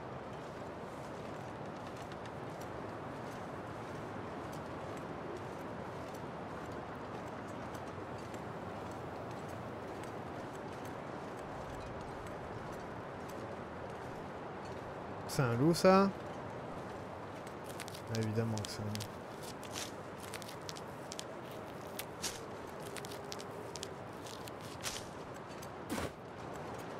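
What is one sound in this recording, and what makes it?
Wind blows steadily.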